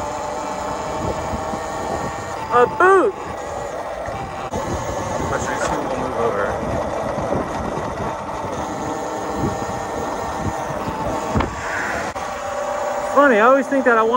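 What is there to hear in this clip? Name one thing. Bicycle tyres roll and hum steadily on pavement.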